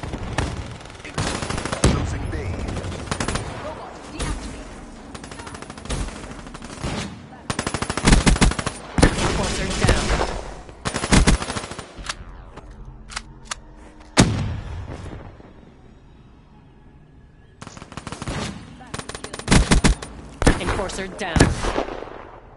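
Gunfire from a video game rattles in rapid bursts.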